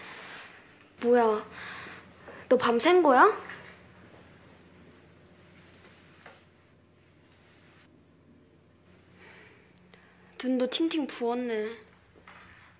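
A young woman speaks sharply nearby.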